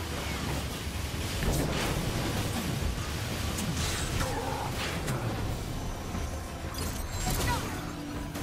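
Heavy blows thud and crash against metal.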